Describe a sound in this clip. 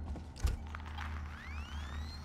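A handheld tracker beeps and pings.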